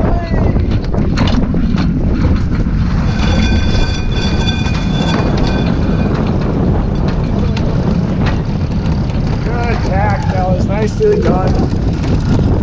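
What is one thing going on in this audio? Wind blows strongly across the microphone outdoors.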